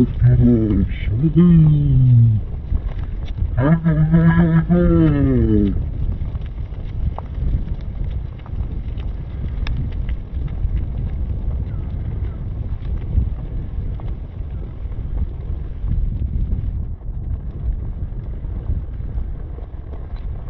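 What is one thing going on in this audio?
Bicycle tyres roll and crunch over a dirt path.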